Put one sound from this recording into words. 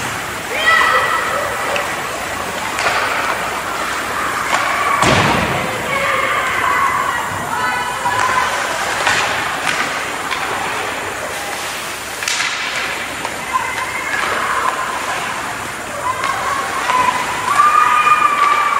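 Young players shout across a large echoing rink.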